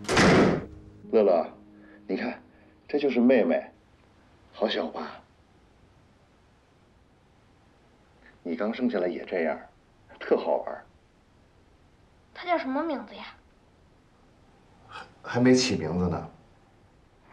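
A man speaks gently and warmly, close by.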